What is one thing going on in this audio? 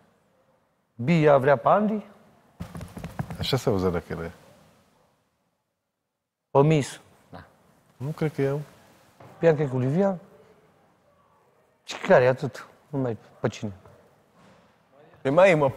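A young man speaks with animation close by, in short bursts with pauses.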